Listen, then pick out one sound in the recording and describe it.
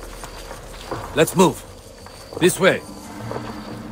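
A man calls out briefly nearby.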